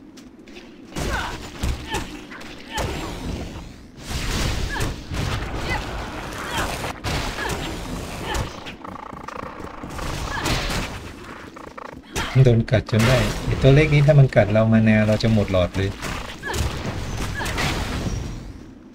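Blows and magic blasts crash in a fast, noisy fight.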